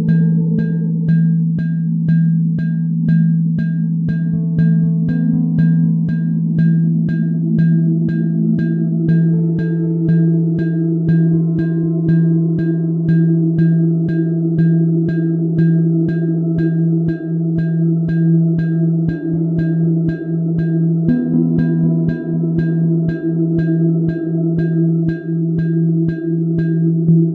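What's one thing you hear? A low electronic drone hums steadily under shifting synth notes.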